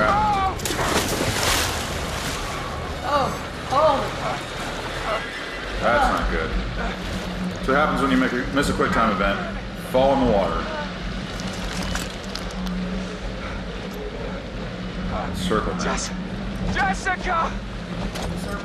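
A young man grunts and cries out in strain, close by.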